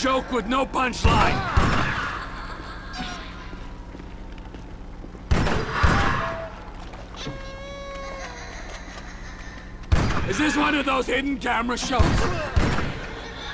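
Gunshots crack in loud bursts.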